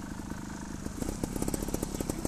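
An electric trials motorcycle pulls away across grass.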